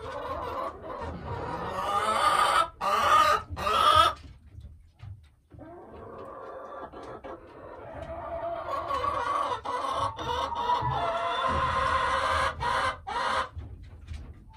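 A hen croons and groans in long, drawn-out calls close by.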